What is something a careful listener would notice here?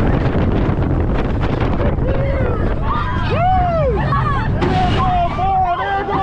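Strong wind roars against a microphone throughout.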